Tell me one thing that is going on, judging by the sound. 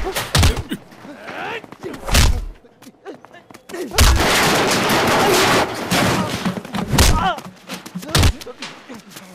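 Heavy punches and thuds land during a fight.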